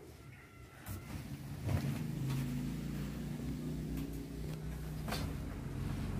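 A young boy's feet thump on the floor.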